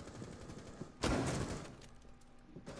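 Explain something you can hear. Gunshots crack in a short burst at close range.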